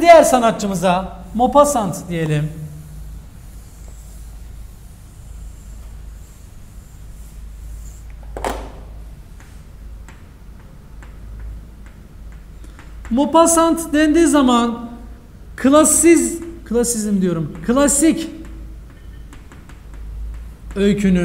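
A young man speaks clearly.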